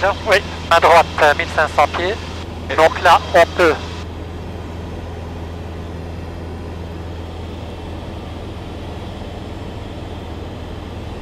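A small plane's engine drones steadily inside the cabin.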